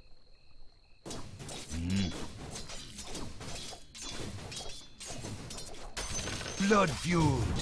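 Swords clash and magic blasts crackle in a fast fight.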